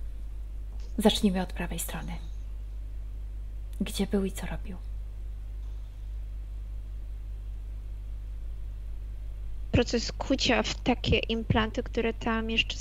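A woman speaks calmly over an online call, in short bursts.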